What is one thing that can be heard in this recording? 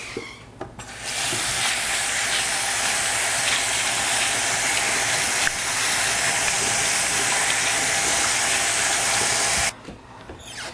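Water runs steadily from a tap, splashing.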